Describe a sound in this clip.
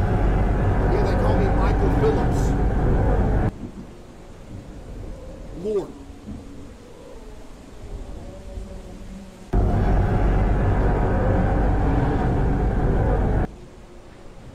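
Wind howls in a snowstorm.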